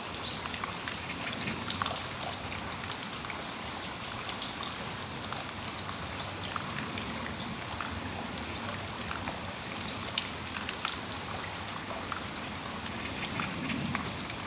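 Steady rain falls outdoors with a soft hiss.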